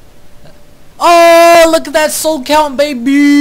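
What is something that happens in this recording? A loud ringing chime sounds after an upgrade is confirmed.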